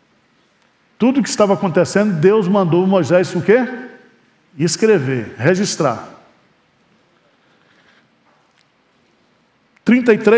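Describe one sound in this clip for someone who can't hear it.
A middle-aged man speaks with animation into a headset microphone, pausing between phrases.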